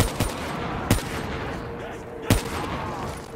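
A rifle fires a few sharp single shots.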